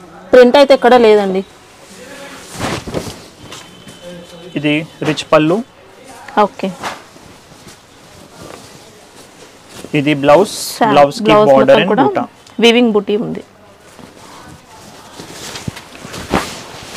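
Silk fabric rustles as it is unfolded and handled.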